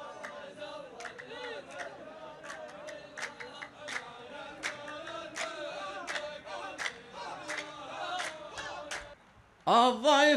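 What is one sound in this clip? A group of men claps in a steady rhythm.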